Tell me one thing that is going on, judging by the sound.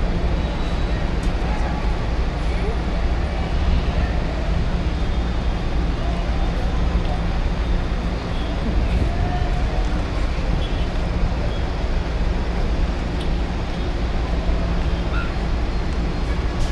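Steady city traffic rumbles below, outdoors.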